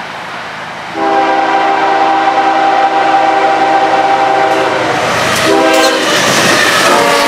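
A train horn blares loudly close by.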